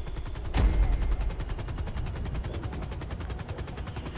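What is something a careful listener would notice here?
A helicopter's rotor thumps rapidly and steadily.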